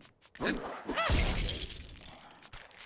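A game character drops and lands on the ground with a heavy thud.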